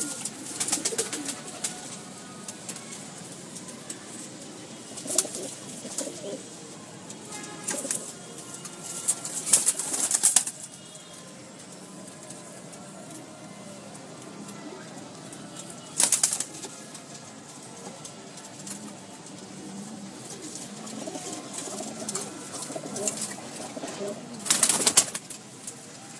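Pigeon wings flap in short bursts.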